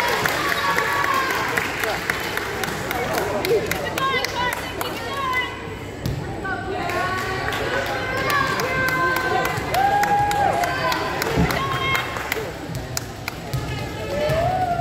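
A volleyball thumps as it is hit.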